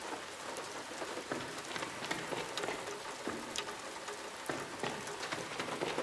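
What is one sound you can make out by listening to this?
Footsteps tap lightly on a hard surface.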